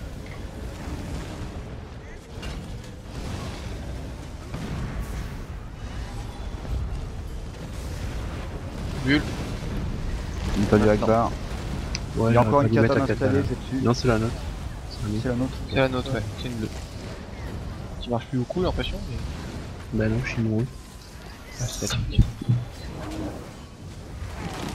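Magic blasts crackle and boom in a fierce battle.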